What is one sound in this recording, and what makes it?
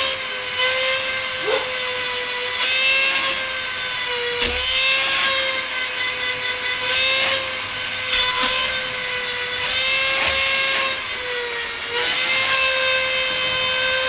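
A small rotary tool whines steadily at high speed.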